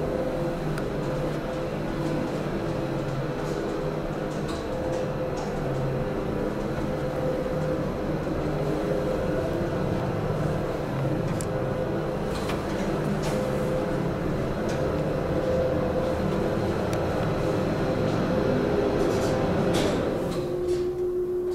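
An elevator hums and rumbles steadily as it travels.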